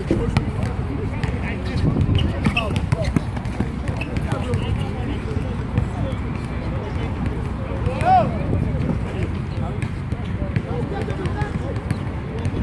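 Men talk and call out to each other outdoors.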